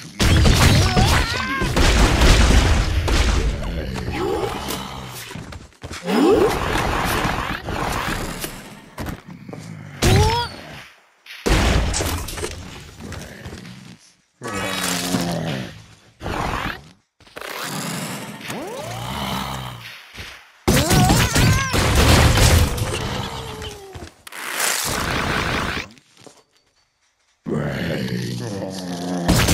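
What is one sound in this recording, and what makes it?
Cartoonish explosions and zaps burst in quick succession.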